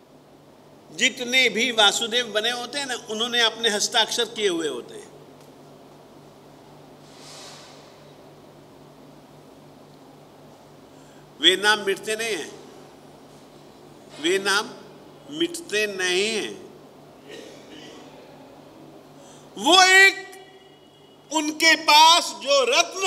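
An elderly man speaks with animation into a microphone, in bursts with pauses.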